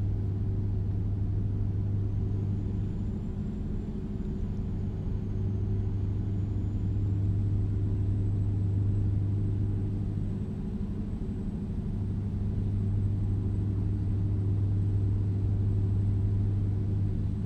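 Tyres hum on a highway.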